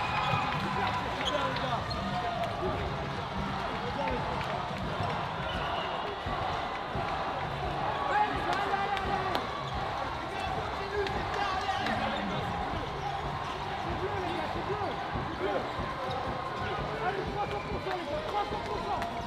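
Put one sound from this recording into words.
A crowd of players and spectators chatter and shout in a large echoing sports hall.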